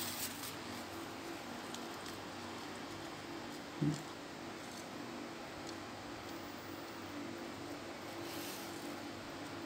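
A thin rod is handled with faint, soft rustles and clicks.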